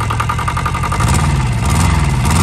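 A diesel engine revs up briefly.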